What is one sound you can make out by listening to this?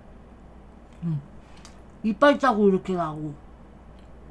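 A young person speaks close to a microphone with animation.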